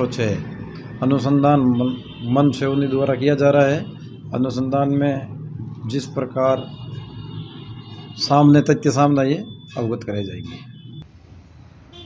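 A middle-aged man speaks calmly into microphones up close.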